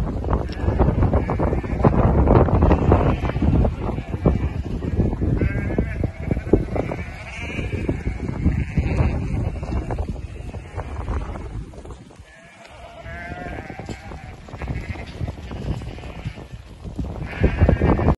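A flock of sheep trots across gravel with many pattering hooves.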